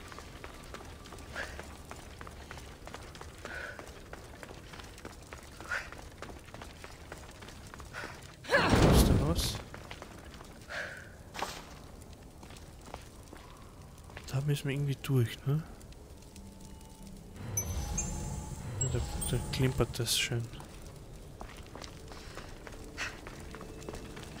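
Footsteps patter on a stone floor.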